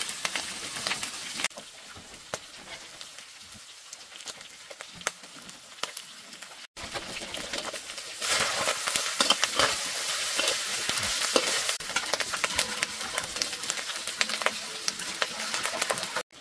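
Food sizzles and crackles loudly in a hot pan.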